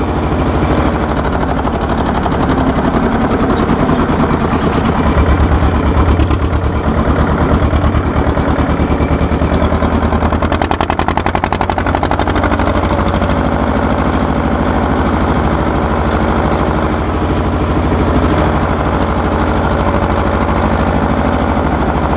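An old tractor engine chugs loudly and steadily close by.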